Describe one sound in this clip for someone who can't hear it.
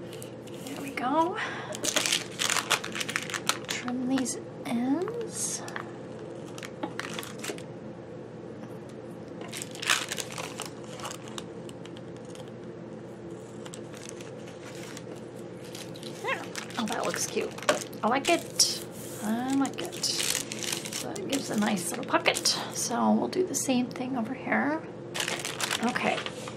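Paper crinkles and rustles as it is handled and folded.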